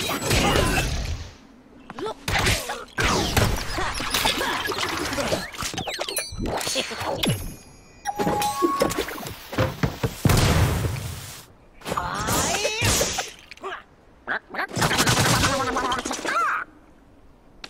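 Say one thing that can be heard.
Cartoonish battle sounds of weapons clashing and thudding come in quick bursts.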